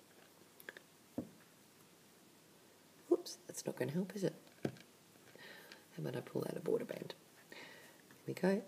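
A small metal hook clicks softly against stretched rubber bands.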